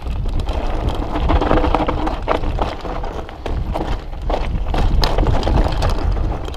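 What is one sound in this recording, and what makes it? Bicycle tyres crunch and skid over loose gravel.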